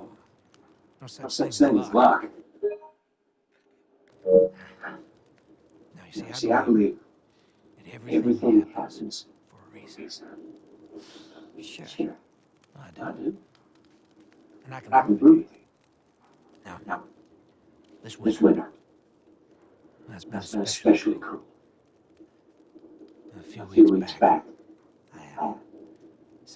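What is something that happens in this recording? A man speaks calmly and warmly, close by.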